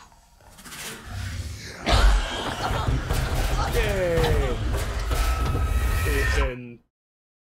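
A creature shrieks and growls close by.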